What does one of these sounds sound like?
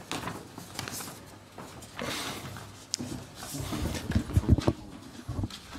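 Footsteps thud across a wooden stage in a large hall.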